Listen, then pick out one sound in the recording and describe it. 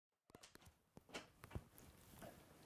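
A door handle clicks.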